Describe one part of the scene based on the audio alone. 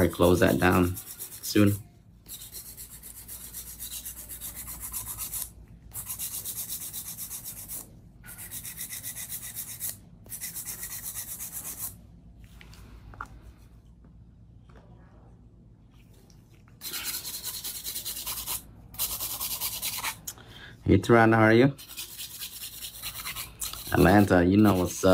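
A nail file rasps rapidly back and forth across a fingernail.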